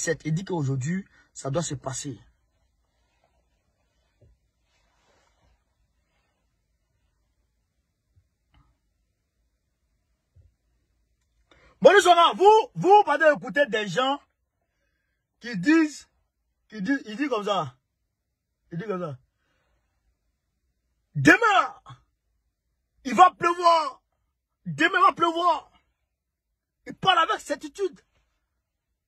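A young man talks with animation close to a phone microphone, in short bursts with pauses.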